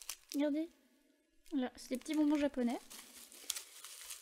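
Plastic bubble wrap crinkles and rustles as hands unwrap it.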